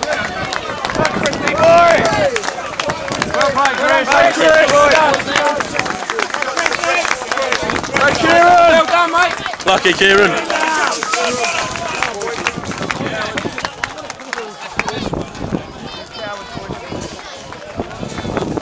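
A crowd of men cheer and chant loudly close by, outdoors.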